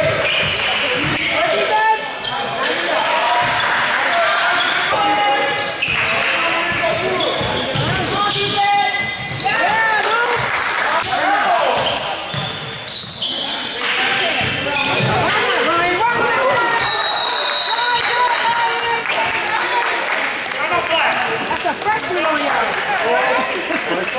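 Spectators chatter in an echoing gym.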